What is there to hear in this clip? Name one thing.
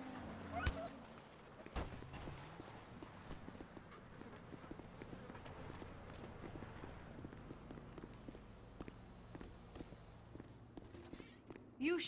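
Footsteps run across dirt and pavement.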